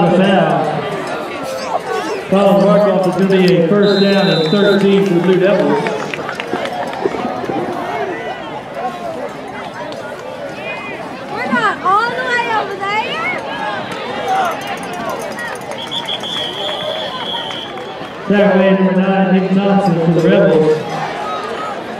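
Young girls chant a cheer loudly together nearby.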